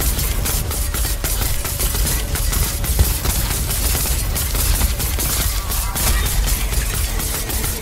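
Deep rumbling booms pound throughout.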